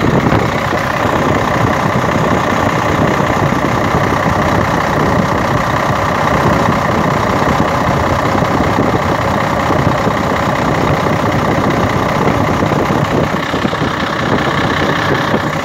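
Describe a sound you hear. An engine runs with a steady loud drone and whine close by.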